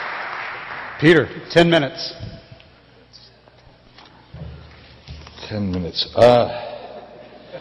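A man speaks into a microphone, his voice echoing through the hall.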